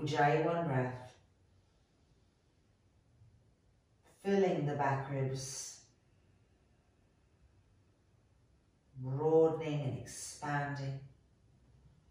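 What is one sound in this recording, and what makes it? A young woman speaks calmly in short phrases, close to a microphone.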